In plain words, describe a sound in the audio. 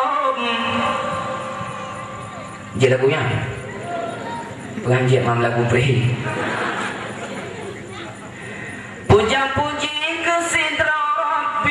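A man sings a long, wavering melody through a microphone in a reverberant hall.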